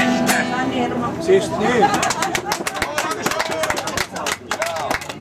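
A lute is plucked in a lively rhythm.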